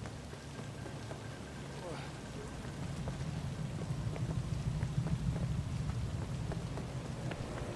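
A car engine hums low and grows louder as it speeds up.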